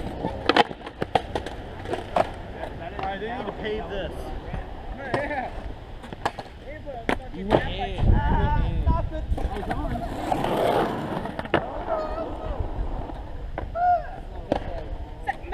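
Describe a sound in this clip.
Skateboard wheels clatter and roll on concrete outdoors.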